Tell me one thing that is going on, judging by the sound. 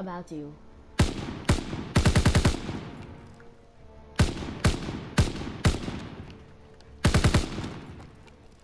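A rifle fires rapid shots in short bursts.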